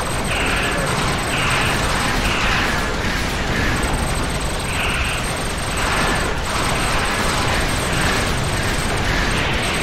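A low engine rumble hums steadily.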